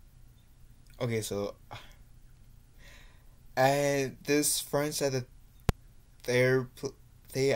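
A young man talks casually, close to the microphone.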